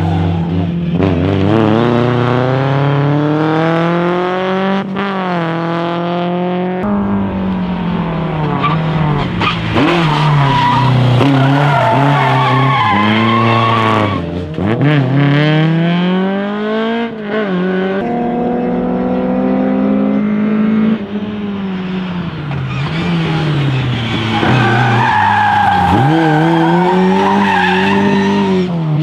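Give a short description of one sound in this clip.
A rally car engine revs hard, rising and falling in pitch as the car slides around corners.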